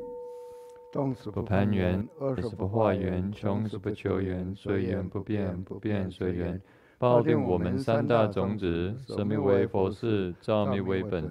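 Men chant together in low, steady voices.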